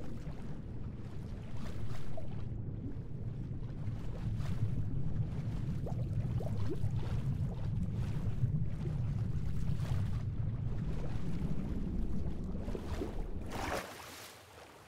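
Water rumbles low and muffled, as if heard from underwater.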